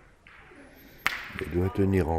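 A steel ball lands and clacks sharply against other balls.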